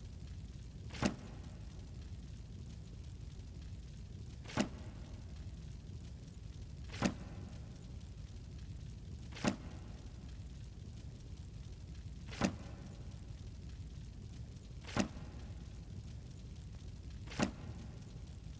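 A short soft click sounds every few seconds as a menu choice changes.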